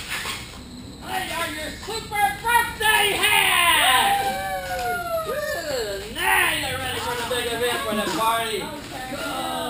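Rubber balloons squeak and squeal as they are twisted and rubbed together.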